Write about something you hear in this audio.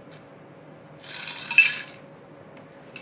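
Liquid pours from a shaker into a glass.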